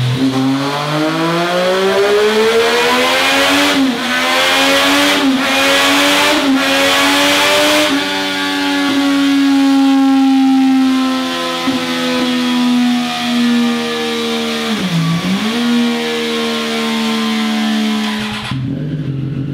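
A motorcycle engine revs hard, rising through the gears with loud exhaust roar.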